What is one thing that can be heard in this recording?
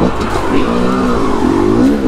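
Water splashes under the wheels of a dirt bike.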